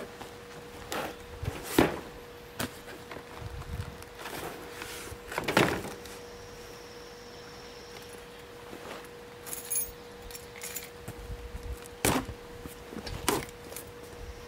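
Wooden boards knock and clatter against each other.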